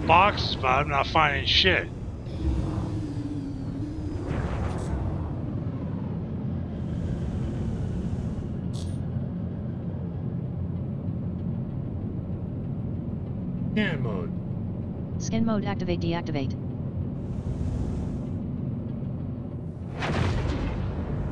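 A spaceship engine hums with a steady low drone.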